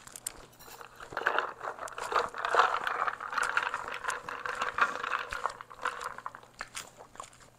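Ice rattles in a cup as a straw stirs it.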